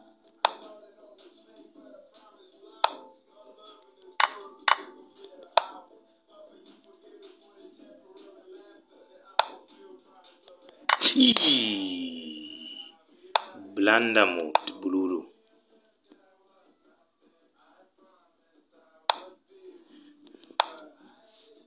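Short wooden clicks sound as chess pieces are moved, one move at a time.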